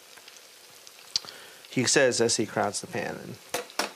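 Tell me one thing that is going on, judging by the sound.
Oil sizzles in a frying pan.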